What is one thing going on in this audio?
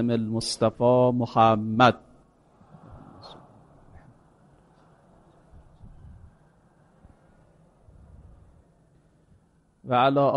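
A man speaks steadily through a microphone.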